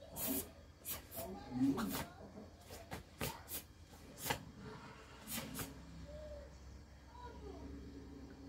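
Bare feet thud and shuffle on a soft mat.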